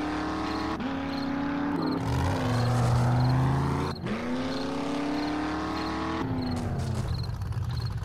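A truck engine revs and roars as it drives.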